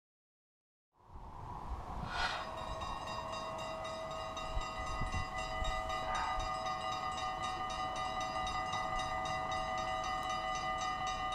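Railway crossing bells ring rapidly and steadily close by.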